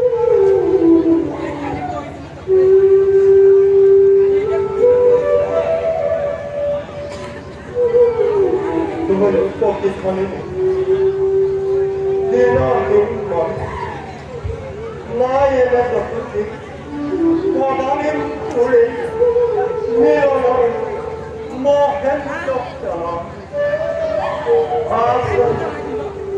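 A man sings loudly in a drawn-out, wavering voice through a loudspeaker.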